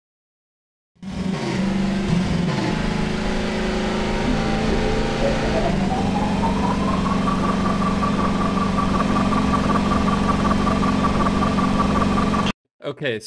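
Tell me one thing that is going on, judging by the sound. A buggy engine hums steadily, then revs up to a higher pitch as the buggy speeds up.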